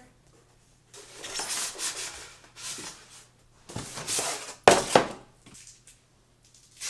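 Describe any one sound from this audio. Cardboard and foam packaging rustle and scrape as a box is unpacked.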